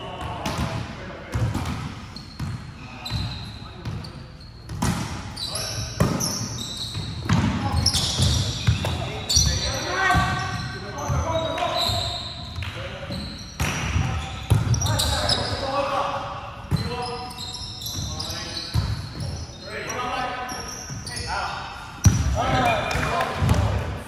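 A volleyball is hit with sharp slaps, echoing in a large hall.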